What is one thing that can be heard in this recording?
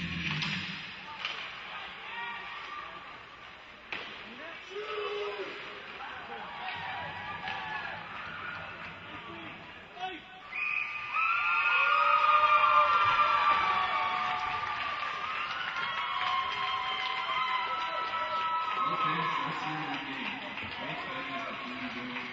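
A crowd of spectators chatters and cheers in a large echoing arena.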